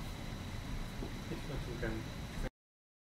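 A man speaks briefly, close by.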